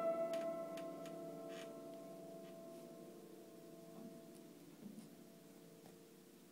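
Piano notes sound in a loose jumble, ringing and slowly fading.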